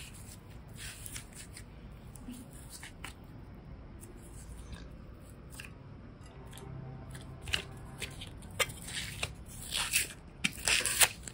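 Soft putty squishes and crackles between fingers.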